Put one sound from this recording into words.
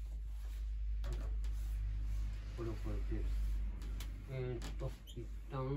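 A man handles small objects that knock and click on a desk.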